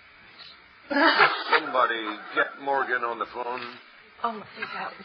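A woman laughs through an online call.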